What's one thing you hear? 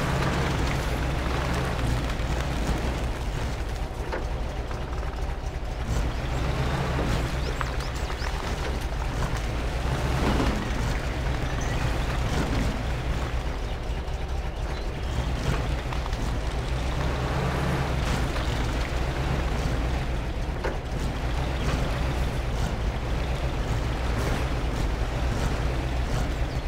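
A truck's diesel engine rumbles steadily, rising and falling as it revs.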